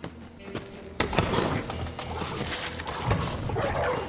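A metal crate lid clanks open.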